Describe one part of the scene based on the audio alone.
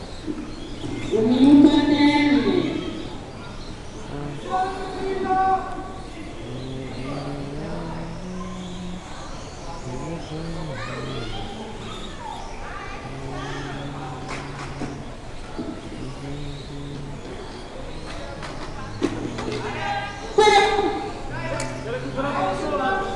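A man talks nearby in a large room.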